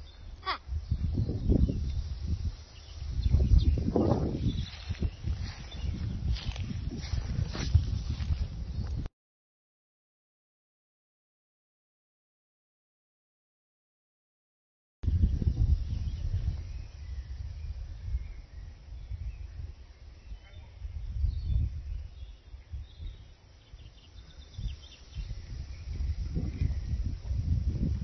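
Leaves rustle in a breeze.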